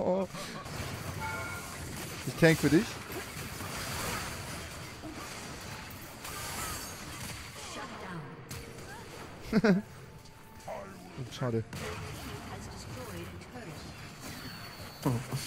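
Video game battle effects clash and whoosh.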